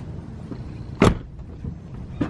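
A car door slams shut outdoors.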